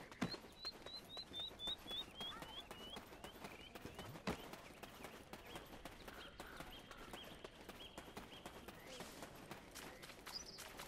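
Quick footsteps patter on a dirt path.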